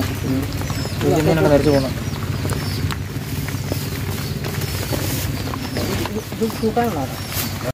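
A man speaks nearby.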